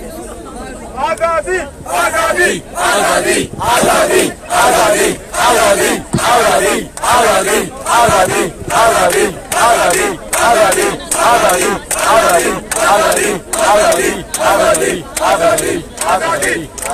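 A crowd chants a rhythmic slogan outdoors.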